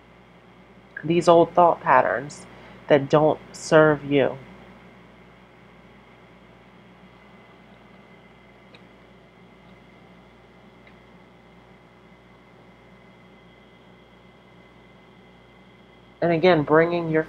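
A woman speaks close by, calmly explaining.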